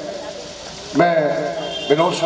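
A man sings into a microphone, heard through loudspeakers.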